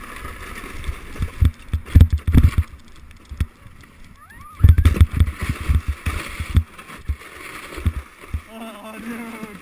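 A plastic sled scrapes and thumps over bumpy snow.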